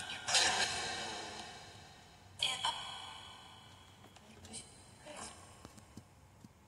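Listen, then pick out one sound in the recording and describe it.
A small phone speaker plays short ringing electronic sounds that slowly fade.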